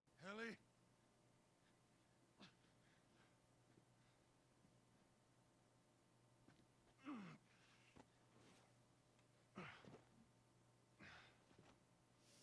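A man calls out anxiously, close by.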